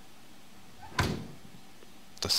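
An oven door shuts with a thud.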